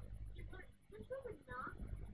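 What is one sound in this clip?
A young girl speaks calmly through a television speaker.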